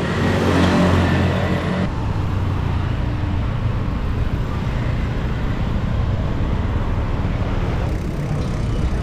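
Motorbike and car engines hum in passing street traffic.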